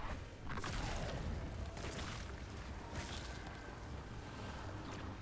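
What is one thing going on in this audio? A deep rumble hums underneath.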